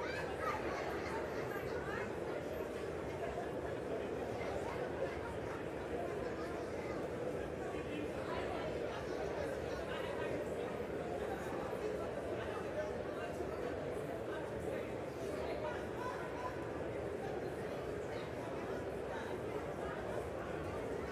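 Many people murmur and chat at once in a large echoing hall.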